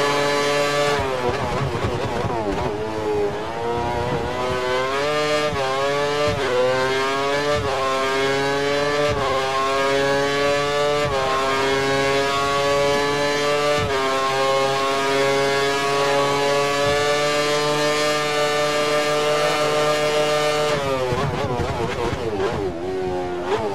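A racing car engine drops and burbles as the car slows for corners.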